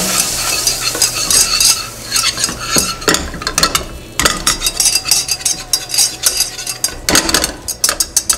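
A wire whisk scrapes and clatters quickly against a metal pan.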